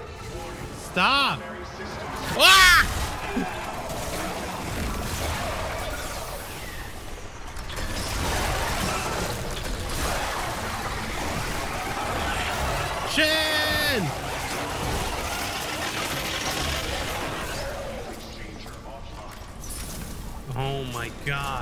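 A synthetic computer voice announces warnings through a loudspeaker.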